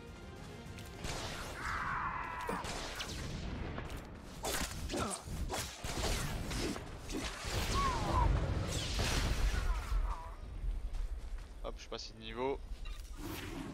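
Blaster shots and weapon blasts crackle in a fight.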